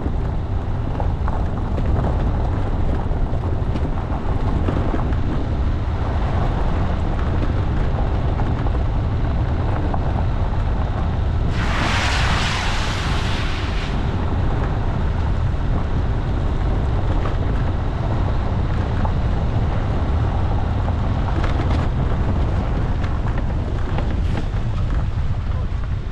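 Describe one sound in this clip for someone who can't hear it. Tyres crunch and rattle over a gravel track.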